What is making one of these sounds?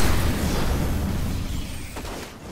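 An explosion rumbles loudly.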